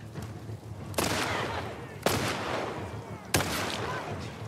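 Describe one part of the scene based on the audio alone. Gunshots ring out sharply, with a short echo.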